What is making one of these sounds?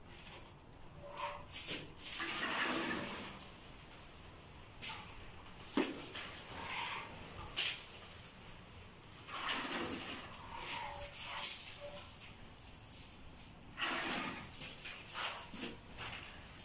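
Electrical wires rustle and scrape against a wall.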